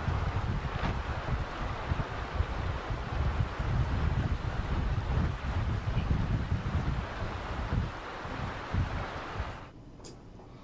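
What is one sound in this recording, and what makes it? A stream flows and gurgles over rocks.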